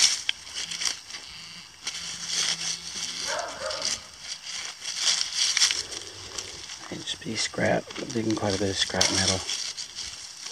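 Pruning shears snip through roots.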